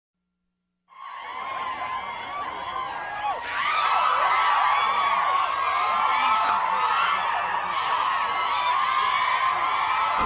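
A crowd of young women screams and cheers excitedly.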